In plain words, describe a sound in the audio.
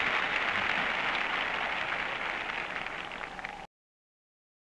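A marching band plays loudly outdoors.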